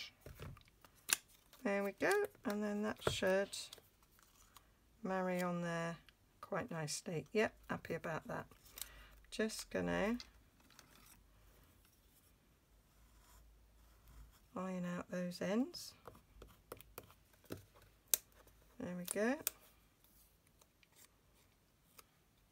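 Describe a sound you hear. Paper rustles softly as hands handle it.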